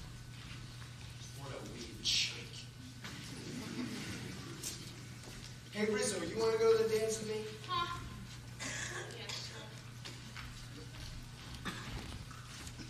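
Actors speak on a stage in a large hall, heard from far off in the audience.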